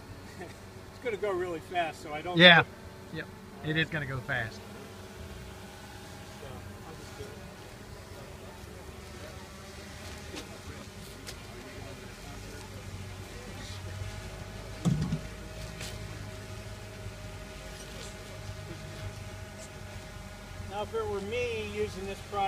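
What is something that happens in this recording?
A man speaks calmly outdoors.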